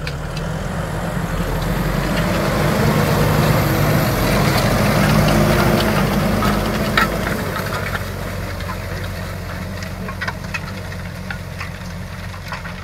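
A harrow churns and rattles through dry soil.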